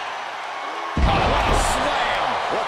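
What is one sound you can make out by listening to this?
A wrestler's body slams hard onto the ring mat with a heavy thud.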